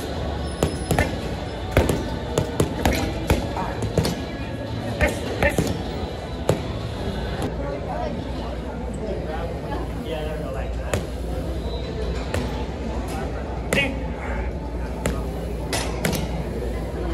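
Gloved punches thump hard against a heavy bag, in quick bursts.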